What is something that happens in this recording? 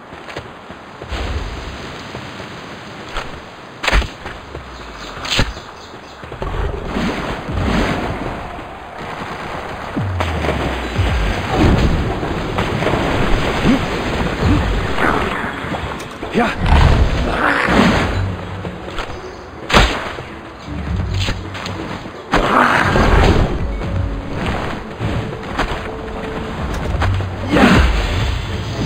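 Footsteps patter quickly across dirt and grass.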